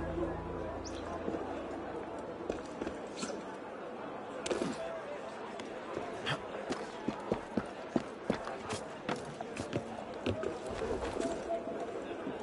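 Footsteps tap quickly on roof tiles.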